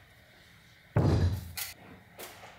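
A heavy wooden board thumps down onto a wooden bench.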